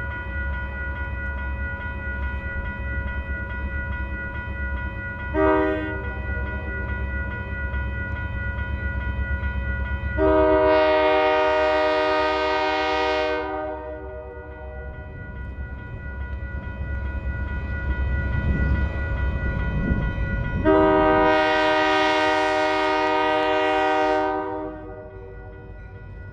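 A diesel locomotive engine rumbles steadily as a train approaches.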